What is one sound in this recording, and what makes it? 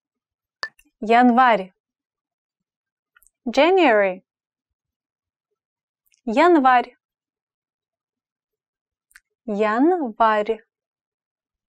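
A young woman speaks words slowly and clearly into a close microphone, with silent pauses between them.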